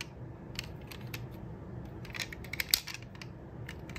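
A tiny toy car door clicks open.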